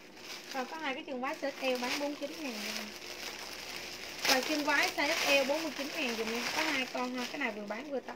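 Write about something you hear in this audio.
A plastic bag crinkles as it is handled.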